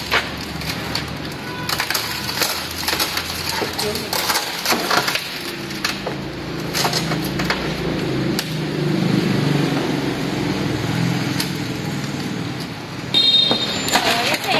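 A metal tool taps and scrapes against a truck door.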